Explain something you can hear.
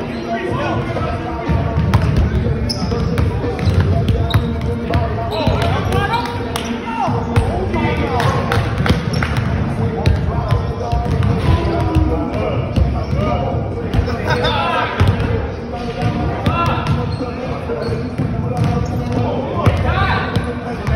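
Young people talk and shout over one another in a large echoing gym.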